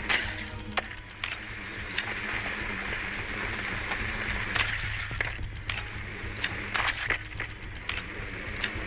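Footsteps crunch on hard ground at a walking pace.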